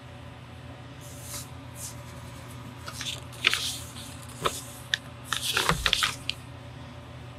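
A pen scratches in short strokes on paper.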